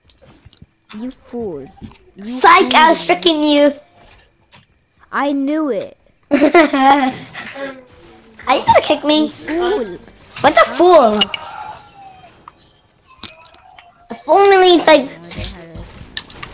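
A child talks excitedly into a nearby microphone.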